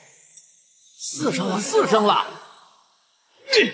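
A young man speaks with animation.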